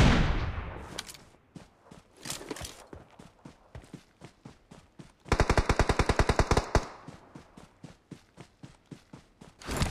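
Footsteps thud quickly and steadily on grass.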